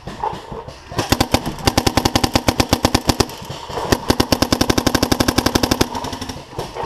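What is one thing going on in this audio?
A paintball marker fires rapid bursts of shots.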